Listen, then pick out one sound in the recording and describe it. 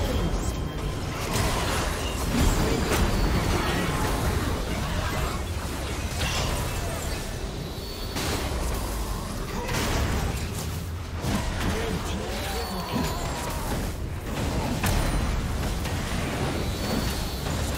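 Spell blasts and magical impacts crackle and boom in a game battle.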